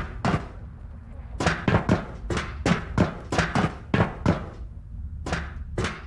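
Footsteps clang on a metal grating, echoing in a hard stairwell.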